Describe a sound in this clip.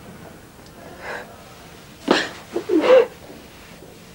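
A young woman sobs nearby.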